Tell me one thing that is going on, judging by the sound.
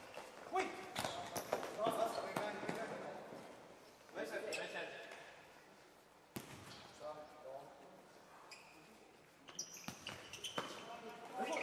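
A ball is kicked with sharp thuds in an echoing hall.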